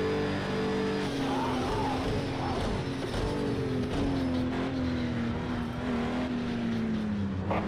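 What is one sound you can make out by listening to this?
A racing car engine drops in pitch as the car brakes and shifts down.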